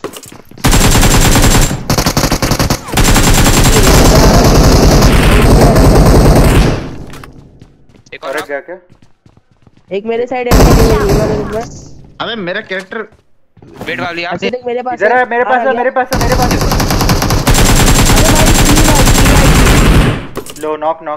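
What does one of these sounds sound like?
Rapid gunfire rattles loudly and close.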